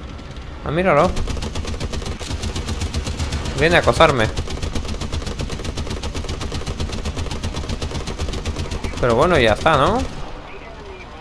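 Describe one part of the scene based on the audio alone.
A heavy machine gun fires in a rapid, steady burst.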